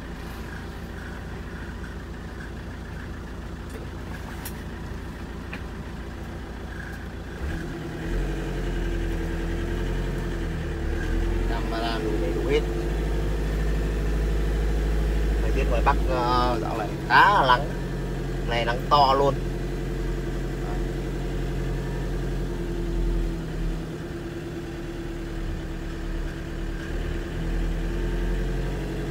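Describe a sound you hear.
A car engine hums low and steady, growing louder as the car drives on.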